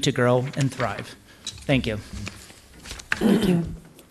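Paper rustles as a man handles sheets.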